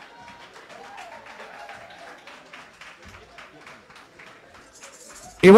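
A tambourine jingles along with the music.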